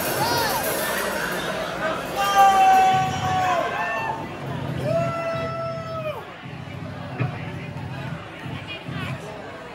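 A rock band plays loudly through amplifiers.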